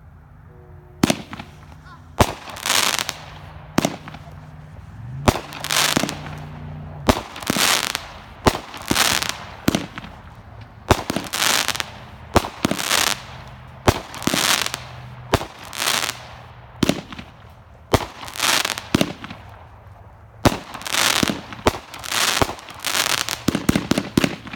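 A firework cake thumps as it launches shots one after another.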